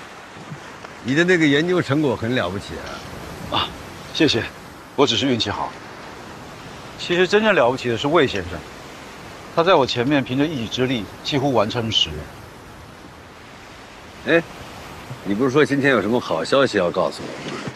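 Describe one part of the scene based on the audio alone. A middle-aged man speaks warmly nearby.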